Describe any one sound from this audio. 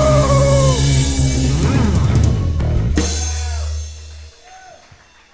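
A band plays loud rock music in a large echoing room and stops.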